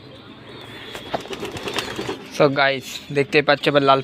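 Pigeons coo.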